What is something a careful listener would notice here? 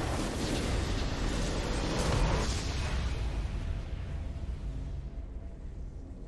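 A triumphant game fanfare swells and fades out.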